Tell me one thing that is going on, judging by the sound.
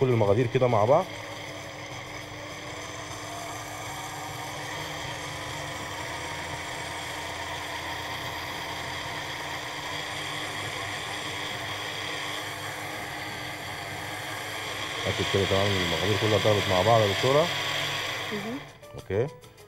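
A blender whirs steadily.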